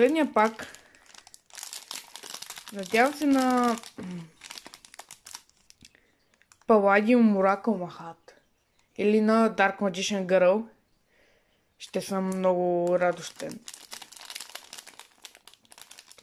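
A foil wrapper crinkles as hands handle it.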